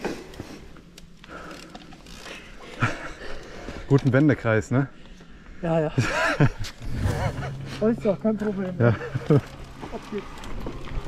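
Bicycle tyres crunch over a dirt trail.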